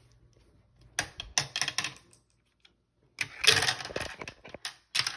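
Marbles clatter and rattle as they roll down a plastic track.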